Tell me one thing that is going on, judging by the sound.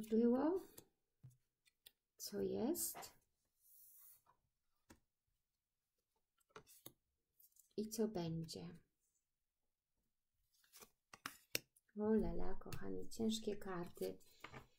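Playing cards slide and tap softly onto a table.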